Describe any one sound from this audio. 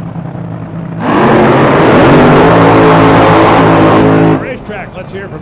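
A dragster engine roars at full power during a burnout, then cuts off abruptly.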